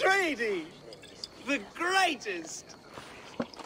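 A man shouts cheerfully nearby.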